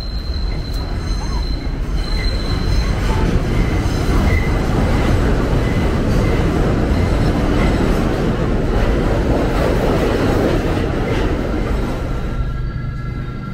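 A train rumbles loudly overhead on an elevated track, then fades.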